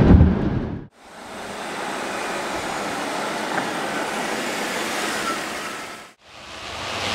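An engine hums as a car drives by on a road.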